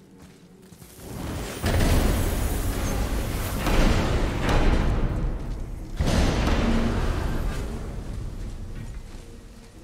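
A magical rushing whoosh swells loudly and slowly fades.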